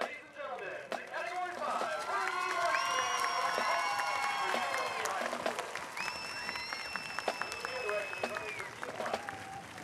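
A marching band plays loud brass chords outdoors.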